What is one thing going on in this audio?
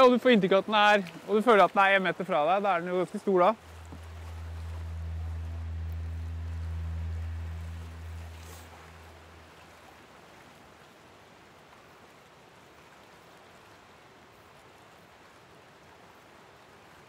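Water laps gently around a man wading.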